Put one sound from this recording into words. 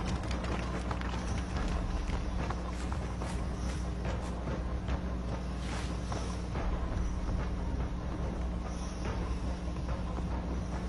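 Footsteps crunch through grass and brush at a steady walking pace.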